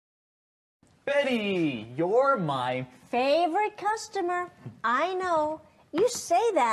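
A woman speaks cheerfully and with animation.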